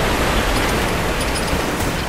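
Water sloshes as someone wades through it.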